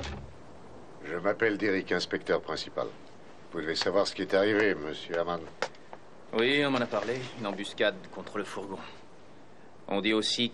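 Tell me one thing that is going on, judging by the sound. An older man speaks calmly and close by.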